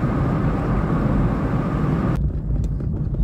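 A car drives along a paved road, heard from inside.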